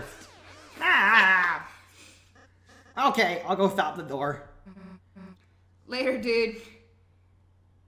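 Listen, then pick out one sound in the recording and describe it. A young woman laughs and talks excitedly into a headset microphone.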